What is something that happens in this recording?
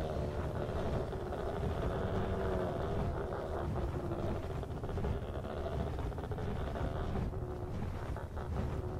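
Large wings beat steadily in the wind.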